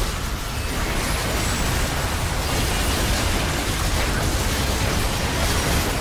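Game spell effects crackle and boom in a rapid, dense clash.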